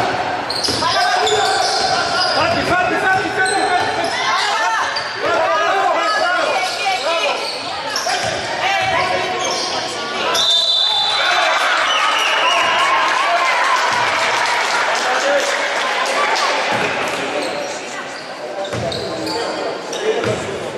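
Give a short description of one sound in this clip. Basketball sneakers squeak on a wooden court.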